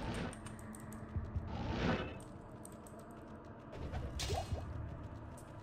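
A spell whooshes sharply in a game, again and again.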